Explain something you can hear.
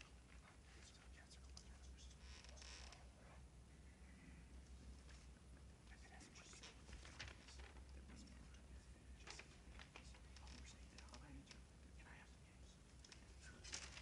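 A young man reads aloud from a script, heard through a microphone in a large hall.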